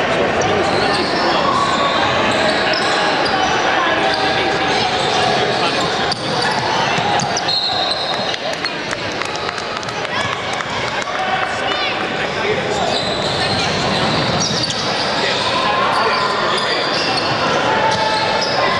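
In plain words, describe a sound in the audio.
A crowd of children and adults chatters and shouts in a large echoing gym.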